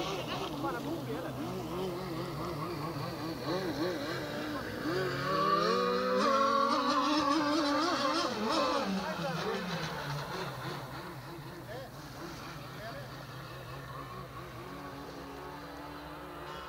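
A speedboat engine whines across the water, its pitch rising and falling, then fading into the distance.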